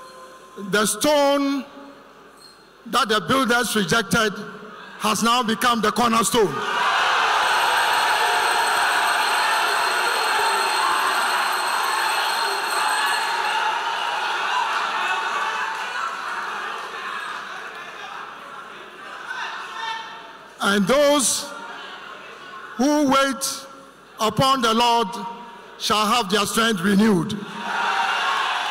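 A man speaks forcefully into a microphone over loudspeakers in a large echoing hall.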